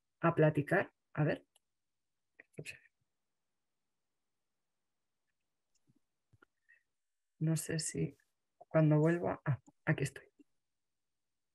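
A middle-aged woman speaks calmly over an online call, in short phrases with pauses.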